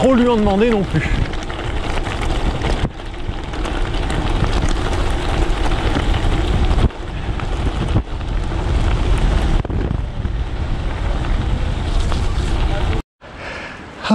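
Bicycle tyres crunch and rattle over gravel.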